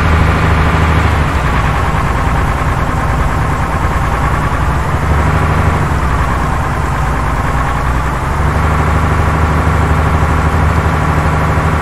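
A truck's diesel engine rumbles steadily as the truck drives along, its pitch rising and falling with the revs.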